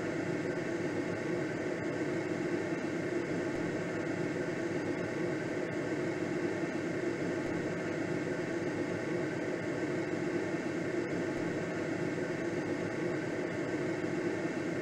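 Wind rushes steadily past a glider's canopy.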